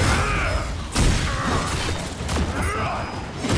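A magic blast bursts with a crackling roar.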